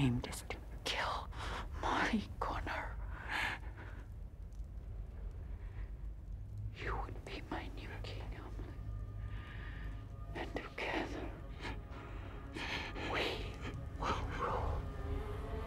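A man speaks softly in a low voice, very close.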